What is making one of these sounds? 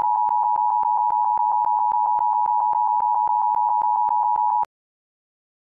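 A steady high-pitched test tone sounds, crackling with rapid clicks, then cuts off abruptly.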